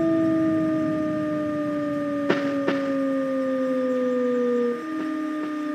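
An electric train's motor whines steadily, slowly falling in pitch as the train slows.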